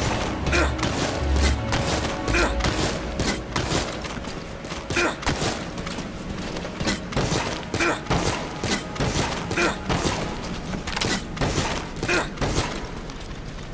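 Footsteps thud quickly on a hard metal deck.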